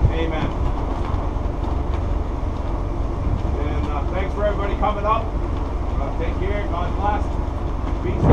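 Men talk in the distance.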